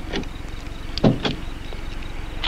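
A car door thuds shut.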